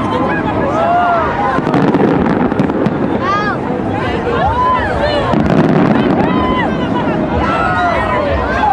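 Fireworks burst with dull booms.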